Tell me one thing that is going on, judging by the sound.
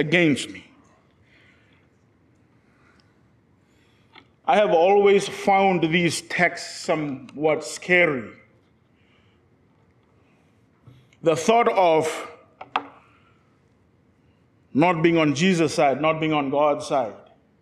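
A man speaks with emphasis into a microphone, with long pauses.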